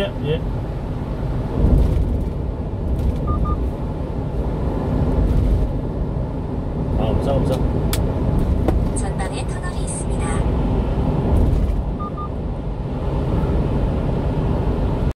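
A car's engine hums and its tyres roar steadily on a wet road.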